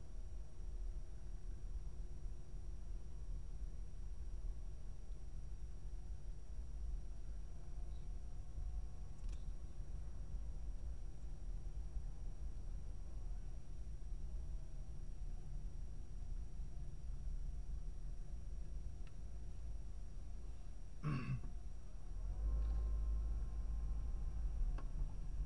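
A car engine hums low and steady while driving slowly, heard from inside the car.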